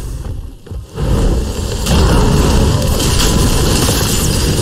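Magic blasts whoosh and boom in a fantasy battle.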